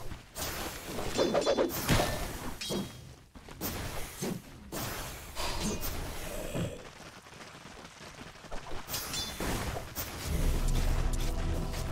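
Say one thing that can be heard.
Weapons clash and strike in a game fight.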